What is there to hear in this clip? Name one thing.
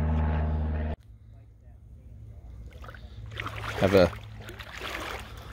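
Small waves lap gently against a post in the water.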